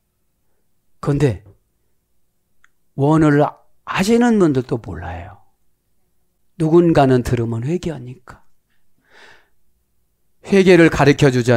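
A middle-aged man speaks with feeling through a close microphone, in bursts with pauses.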